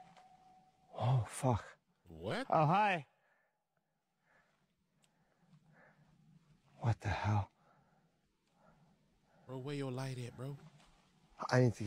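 A man talks into a close microphone with surprised, animated reactions.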